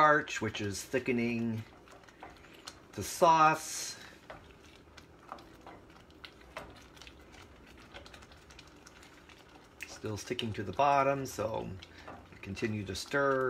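A wooden spoon stirs thick sauce in a pot with soft scraping.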